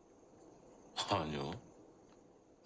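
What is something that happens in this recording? A young man briefly replies in a soft voice.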